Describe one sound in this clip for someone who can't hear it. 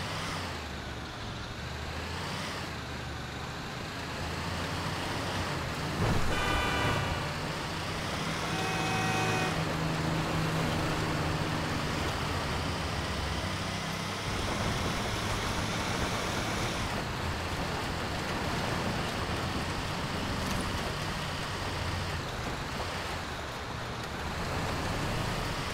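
A truck engine rumbles and revs as it drives.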